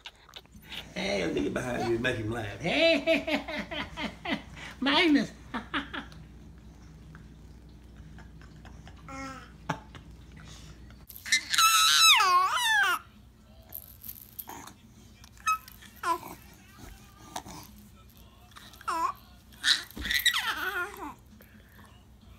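A baby babbles close by.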